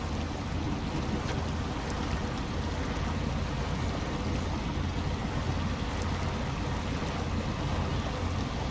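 Tyres churn through mud.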